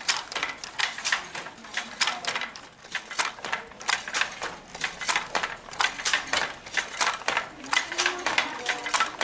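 A wooden hand loom clacks and knocks in a quick rhythm.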